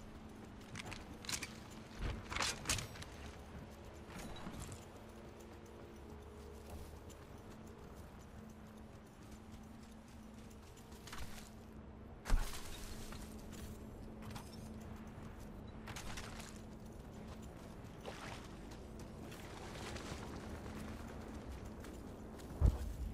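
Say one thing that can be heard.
Footsteps run quickly over wooden planks and grass.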